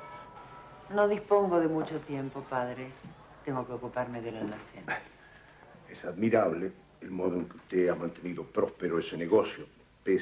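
A middle-aged man speaks calmly up close.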